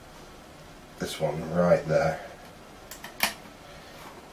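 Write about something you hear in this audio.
Small plastic parts click as a man fits them together.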